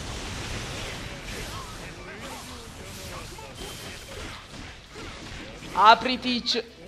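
Blades swish and strike in a loud fight.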